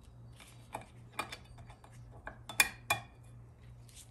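A metal pick scrapes and clicks against a metal plate.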